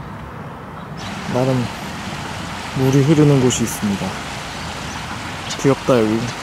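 A small stream trickles over stones.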